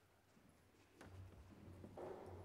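An organ plays softly in a large echoing hall.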